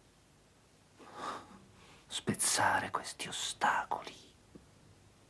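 A man speaks quietly, close by.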